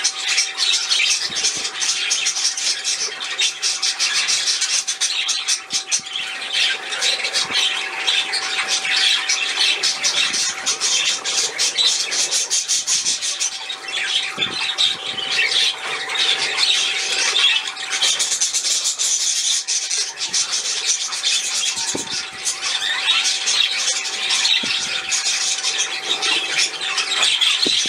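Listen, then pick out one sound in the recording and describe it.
A small fountain bubbles and splashes steadily into a bowl of water.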